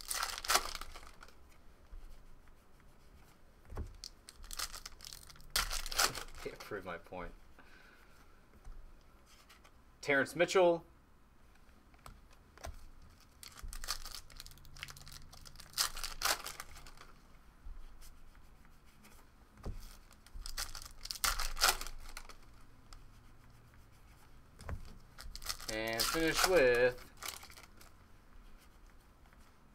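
Trading cards slide and rustle against each other as they are shuffled by hand.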